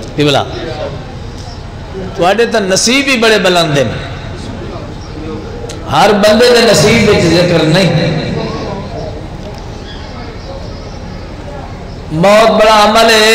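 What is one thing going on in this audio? A man speaks forcefully and loudly through a microphone, with long pauses.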